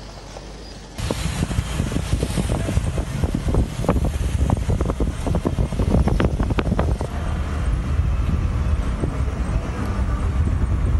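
Traffic rumbles and roars along a busy road.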